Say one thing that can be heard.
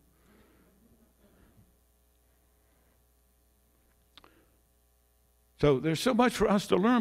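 An elderly man speaks into a microphone over loudspeakers in a hall.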